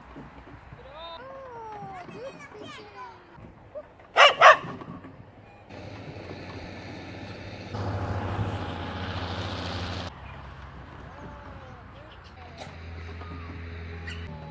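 A woman calls out to a dog nearby.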